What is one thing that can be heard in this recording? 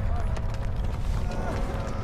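A fire crackles in a metal barrel.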